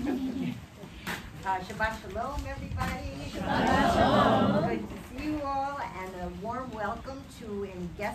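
A woman speaks calmly into a microphone, heard over a loudspeaker.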